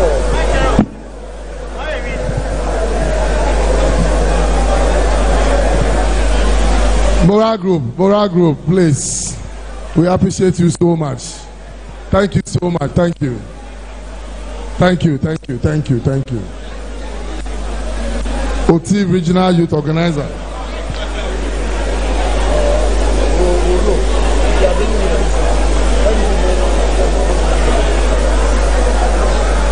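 A large crowd chatters loudly in a big echoing hall.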